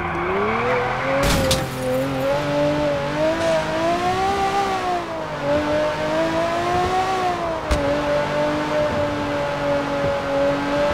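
A sports car engine roars, accelerating hard.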